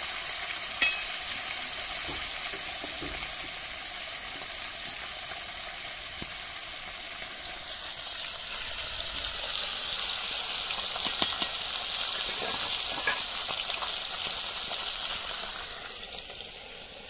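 Fish sizzles and crackles as it fries in hot oil.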